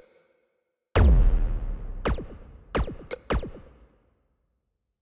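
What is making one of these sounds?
A loud electronic whoosh and boom sound as a game menu choice is confirmed.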